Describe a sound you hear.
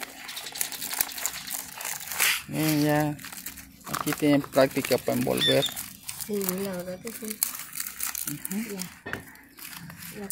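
Large leaves rustle and crinkle as they are folded by hand.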